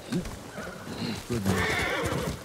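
A horse snorts.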